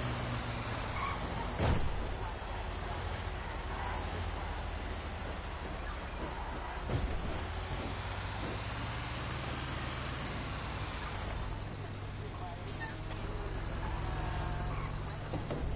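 A heavy truck engine rumbles steadily as it drives.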